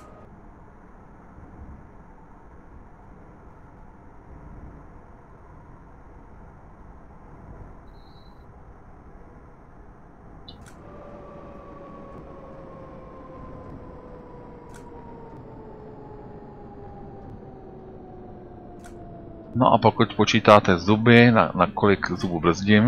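A tram rumbles along its rails.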